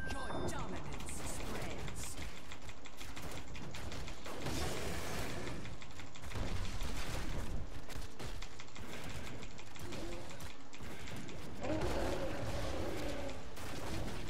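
Magic blasts and combat effects crackle and clash.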